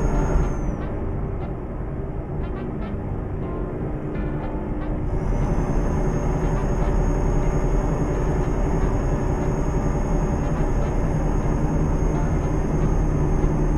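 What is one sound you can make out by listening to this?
A truck engine hums steadily and grows louder.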